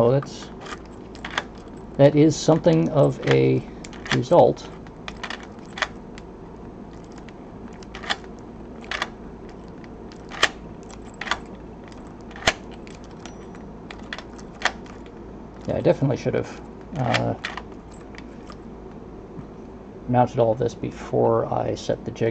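Metal picks click and scrape inside a lock.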